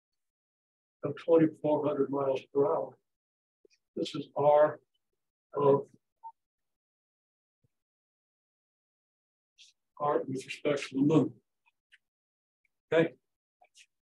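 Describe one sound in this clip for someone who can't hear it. An elderly man speaks calmly, as if lecturing, in short bursts with pauses.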